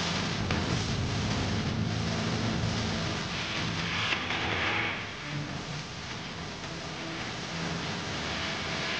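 A keyboard plays along.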